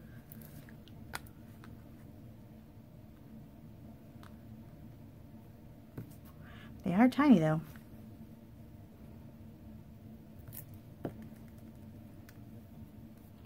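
Paper rustles softly as a card is handled.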